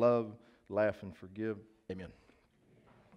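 A man speaks emotionally into a microphone.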